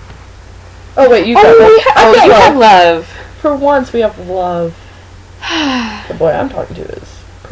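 Another young woman laughs and chats close by.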